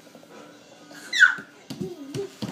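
A baby squeals with delight close by.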